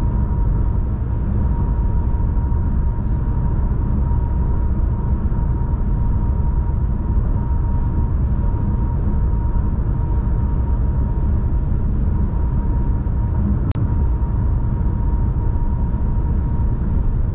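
Tyres roar steadily on a highway as a car drives at speed.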